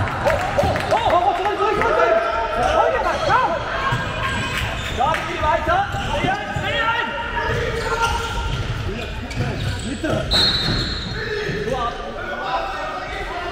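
Young players shout to each other across a large echoing hall.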